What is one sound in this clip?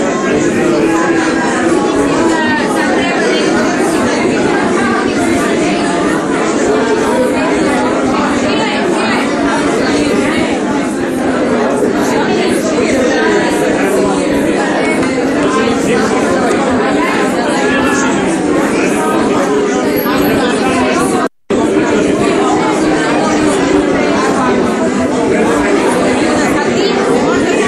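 A large crowd of men and women talks loudly all at once in an echoing room.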